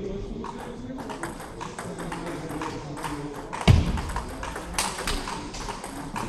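Table tennis balls click sharply against paddles and a table in a large echoing hall.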